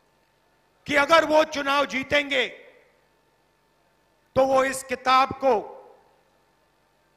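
A middle-aged man speaks forcefully into a microphone, heard through loudspeakers.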